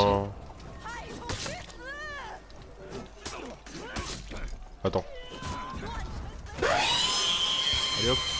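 Swords and shields clash in a fight.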